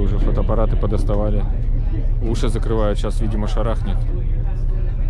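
A man speaks nearby with animation.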